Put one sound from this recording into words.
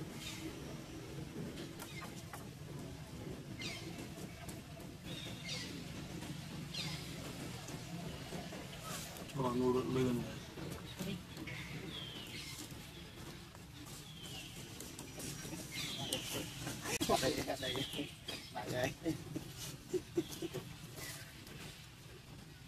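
A young monkey squeals in short high cries.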